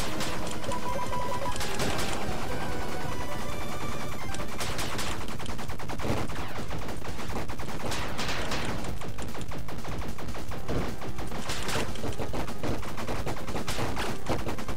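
Explosions burst in short booms.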